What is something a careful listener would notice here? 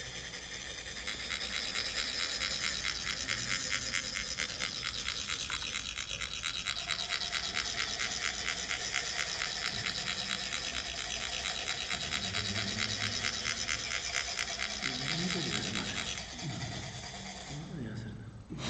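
Metal funnels rasp rapidly and steadily as sand is poured.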